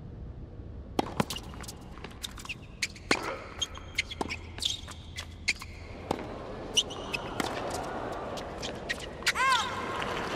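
Tennis rackets strike a ball back and forth in sharp pops.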